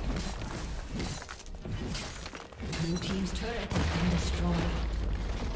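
Game weapons clash and zap in a fast fight.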